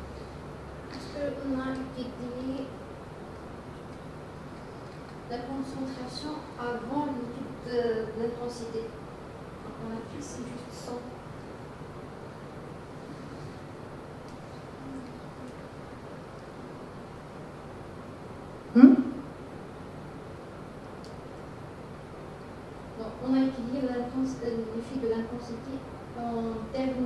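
A woman speaks calmly through a microphone in a large echoing hall, with pauses.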